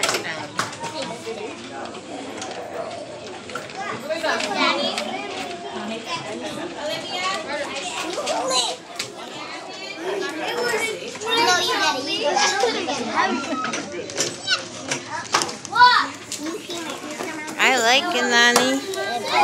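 Children chatter in the background of a busy room.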